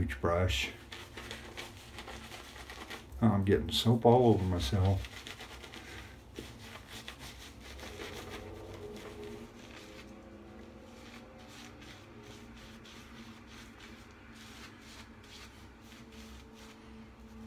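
A shaving brush swishes and scrubs lather on stubble.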